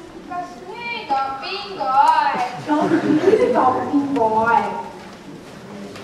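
Young actors speak with animation in a large echoing hall.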